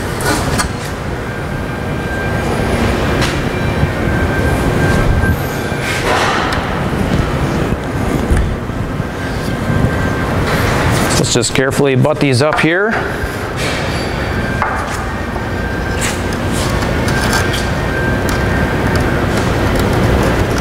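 Metal panels knock and clatter as hands handle them.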